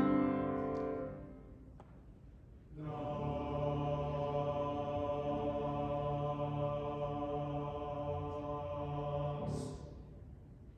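A choir sings a sustained chord in a large echoing hall.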